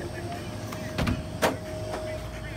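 A refrigerator door swings shut with a thud.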